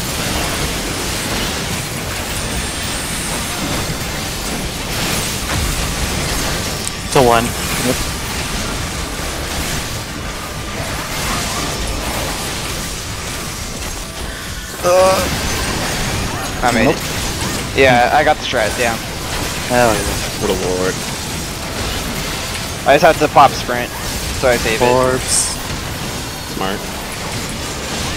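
Magical spell effects whoosh and chime throughout a battle.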